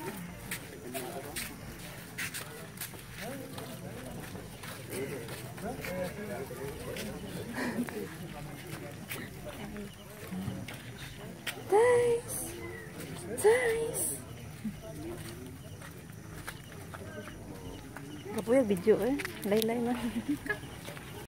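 A crowd of men and women chatter outdoors at night.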